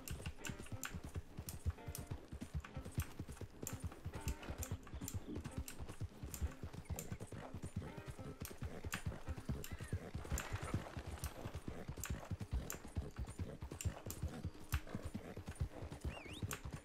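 A horse's hooves clop steadily on a dirt path.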